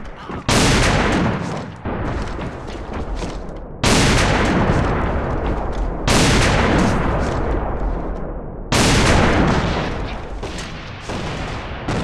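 Loud rifle shots boom and echo, one after another.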